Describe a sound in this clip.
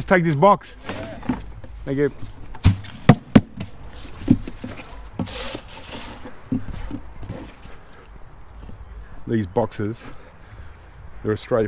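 A plastic tub knocks and rattles as it is handled.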